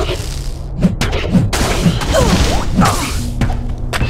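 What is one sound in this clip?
Electric magic crackles and zaps.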